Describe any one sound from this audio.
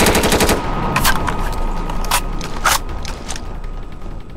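A gun is reloaded with metallic clicks.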